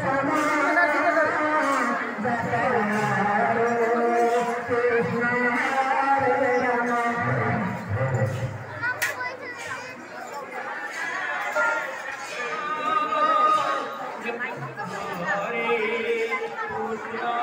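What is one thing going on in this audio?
A group of women sings together loudly nearby.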